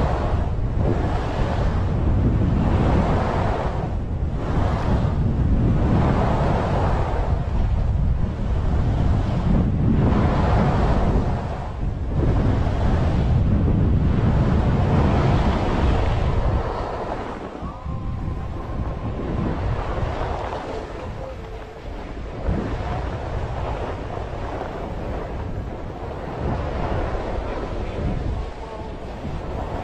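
Wind rumbles loudly across the microphone.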